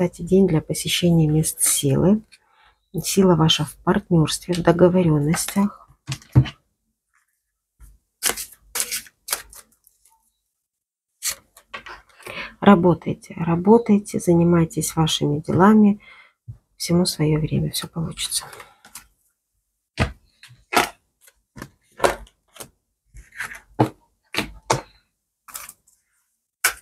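Playing cards slide and tap softly on a cloth-covered table.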